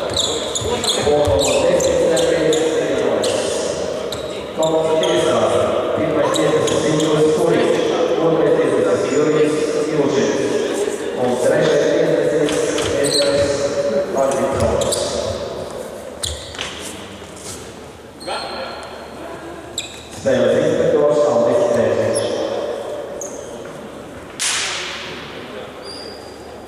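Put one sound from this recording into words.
Men talk and call out, echoing in a large indoor hall.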